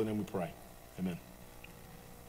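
A man speaks calmly through a microphone.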